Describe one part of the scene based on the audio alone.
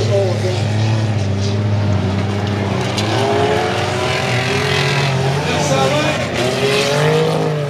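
Tyres skid and scrape on loose dirt.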